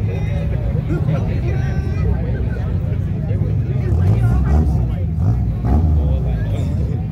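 Several people chatter in the distance.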